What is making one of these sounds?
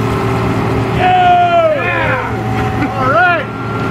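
A man whoops and shouts loudly.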